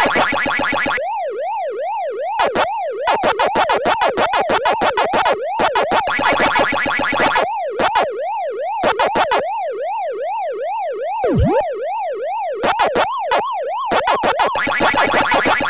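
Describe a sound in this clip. A wailing electronic siren rises and falls steadily.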